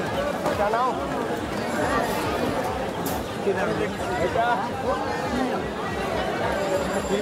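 Pigeons flap their wings in a cage.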